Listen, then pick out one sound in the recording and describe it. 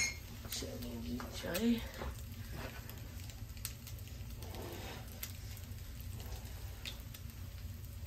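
Bread sizzles softly in a frying pan.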